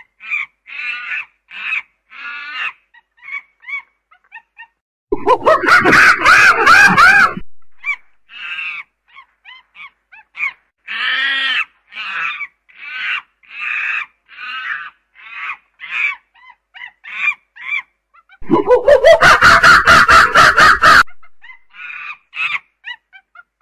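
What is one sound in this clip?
A chimpanzee hoots and screams loudly in rapid bursts.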